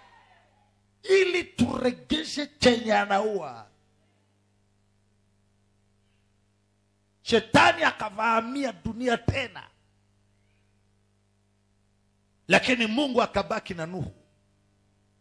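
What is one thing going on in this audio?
A man preaches forcefully into a microphone, in short bursts with pauses.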